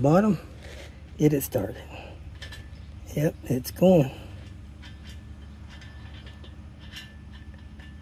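Fingers rub along a metal edge.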